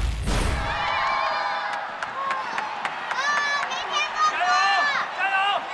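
A crowd of women and children cheers and shouts excitedly.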